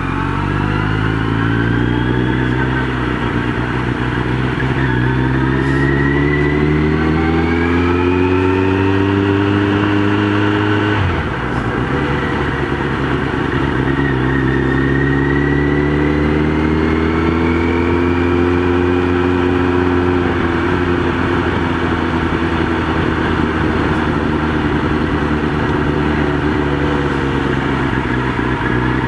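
A motorcycle engine hums and rises in pitch as the bike speeds up.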